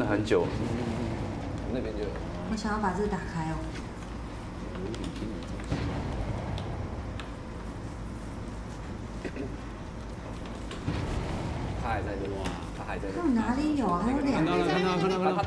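Young women talk and react with animation, close to microphones.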